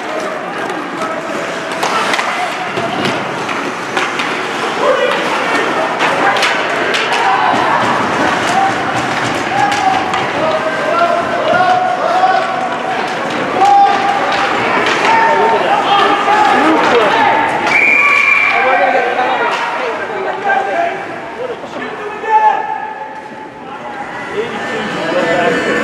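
A crowd of spectators cheers and shouts in a large echoing arena.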